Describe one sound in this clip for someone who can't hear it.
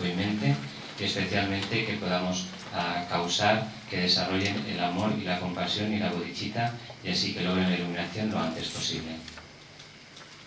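An elderly man speaks slowly and calmly in a room with some echo.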